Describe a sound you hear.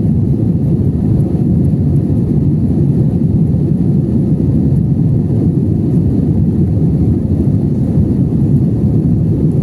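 A jet airliner's engines roar steadily in flight, heard from inside the cabin.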